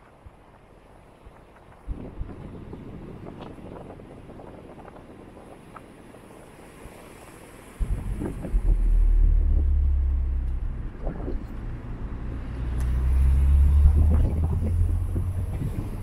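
A car engine hums as a car climbs the road toward the listener and passes close by.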